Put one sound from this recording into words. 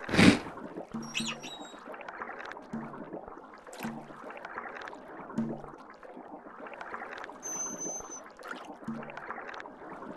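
Short electronic blips sound as game menu buttons are tapped.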